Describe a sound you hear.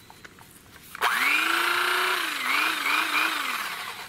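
An electric knife whirs with a high, buzzing hum.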